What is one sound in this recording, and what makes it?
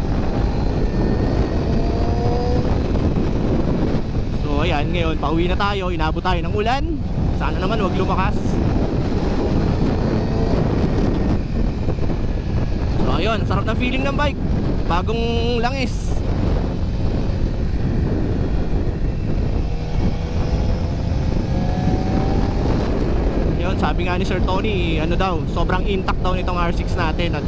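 A motorcycle engine revs up and down as it rides.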